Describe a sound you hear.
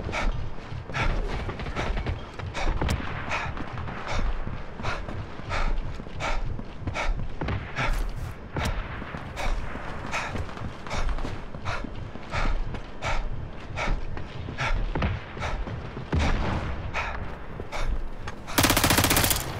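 Quick footsteps clatter across a metal roof.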